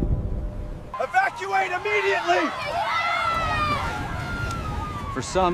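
A crowd of people screams while running.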